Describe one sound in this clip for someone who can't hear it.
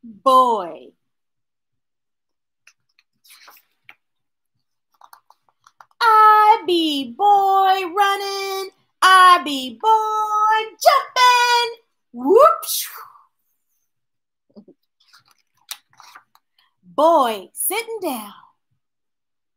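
A woman reads aloud expressively, close by, with pauses.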